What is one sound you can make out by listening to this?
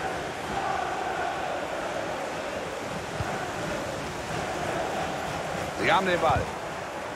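A large stadium crowd roars steadily in the background.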